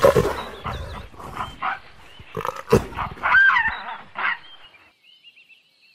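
A monkey shrieks in distress.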